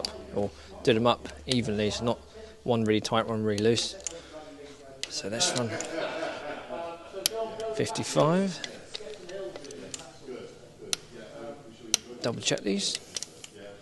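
A ratchet wrench clicks as it turns a bolt.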